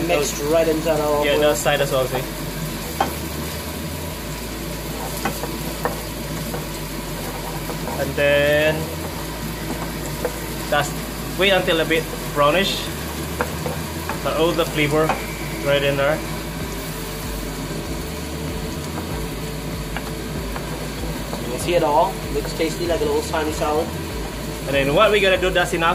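A wooden spoon scrapes and taps against a frying pan.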